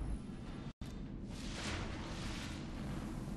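A shimmering whoosh sounds as a game character is revived.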